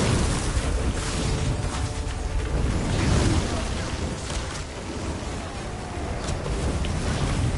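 Magic blasts crash and explode.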